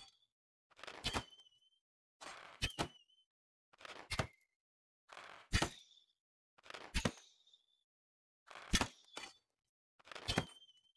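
A bow shoots arrows that whoosh and hit with a sharp thud, over and over.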